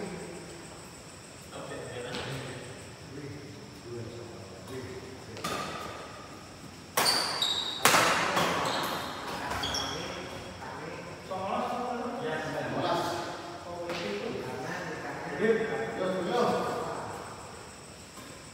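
Rackets strike a shuttlecock with sharp pops.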